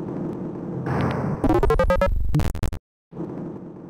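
A short chime sounds as an item is picked up.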